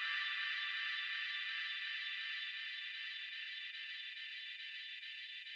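A synthesizer plays a steady, bright electronic tone that slowly fades.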